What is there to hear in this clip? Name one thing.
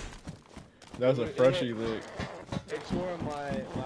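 Boots thud on a hard floor indoors.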